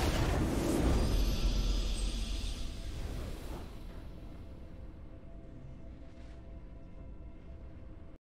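A triumphant fanfare plays and slowly fades.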